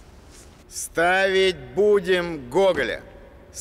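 A man speaks with animation, his voice rising and falling.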